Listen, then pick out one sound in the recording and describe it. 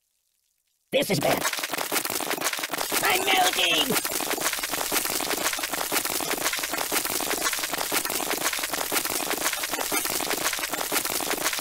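Gas hisses steadily from a spray nozzle.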